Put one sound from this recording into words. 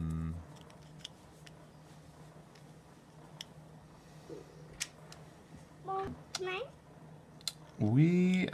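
Plastic toy parts click and snap together.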